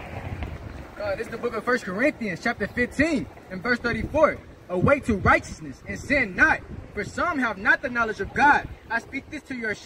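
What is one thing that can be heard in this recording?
A young man reads aloud with animation, close by.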